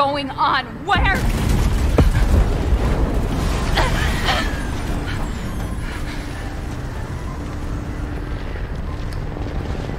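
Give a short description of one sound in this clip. A loud explosion booms and rumbles on.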